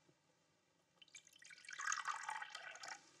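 Tea pours from a teapot into a cup.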